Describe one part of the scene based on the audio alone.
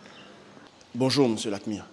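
A man speaks loudly and close by.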